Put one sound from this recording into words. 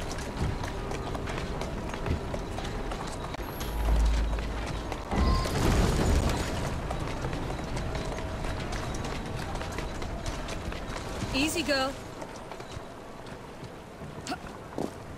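Horse hooves clop on cobblestones.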